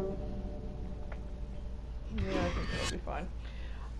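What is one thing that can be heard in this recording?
A short menu click sounds.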